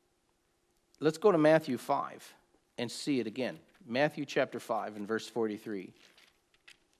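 A middle-aged man speaks calmly and closely, as if reading aloud.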